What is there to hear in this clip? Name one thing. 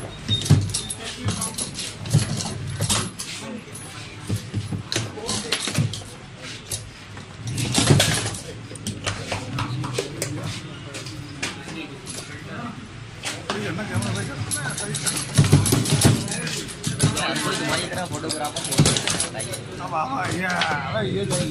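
A plastic ball clacks against wooden players and rattles against the walls of a foosball table.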